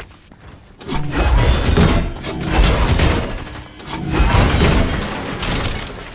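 Objects smash and shatter with loud crashes.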